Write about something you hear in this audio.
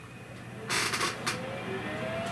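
A power switch clicks on.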